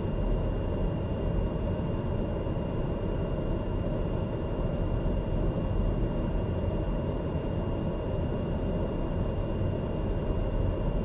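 A turboprop engine drones, heard from inside the cockpit.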